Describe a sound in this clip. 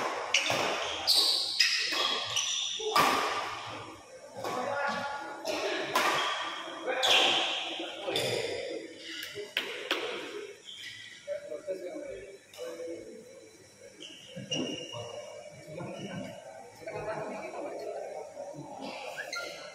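Spectators chatter nearby.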